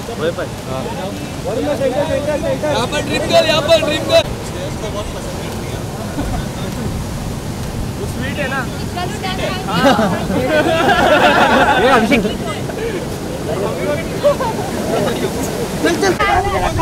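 Several men and women call out and chatter nearby.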